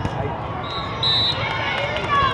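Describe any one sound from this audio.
A referee's whistle blows sharply.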